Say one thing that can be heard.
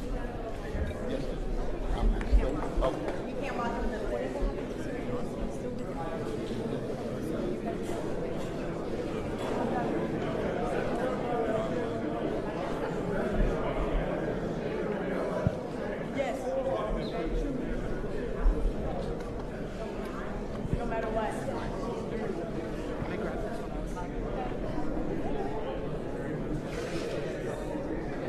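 Several men talk and murmur nearby.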